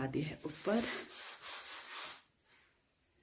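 A cloth rubs against window glass.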